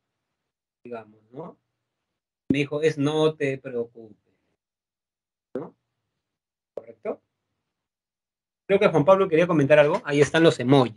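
A young man speaks calmly over an online call, with pauses.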